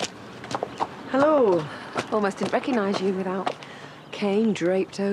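A young woman answers brightly.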